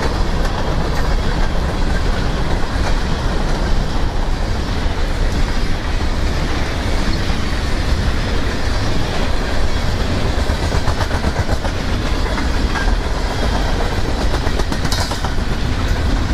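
Steel wheels clatter and click over rail joints.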